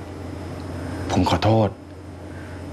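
A young man speaks briefly in a low voice.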